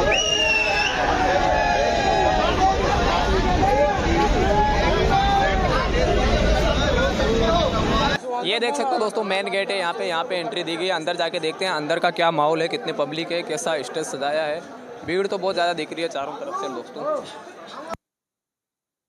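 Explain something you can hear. A crowd of men chatters and talks loudly outdoors.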